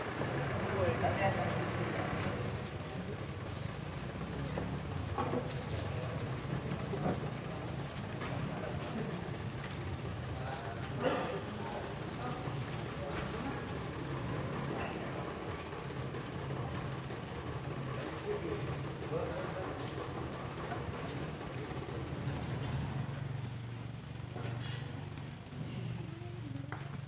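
A crowd of young people murmurs and chatters nearby.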